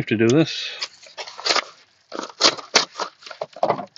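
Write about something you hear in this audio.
A knife slices through a padded paper envelope.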